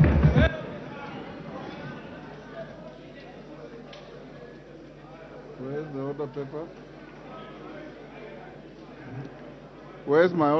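Many men and women murmur and talk quietly in a large, echoing hall.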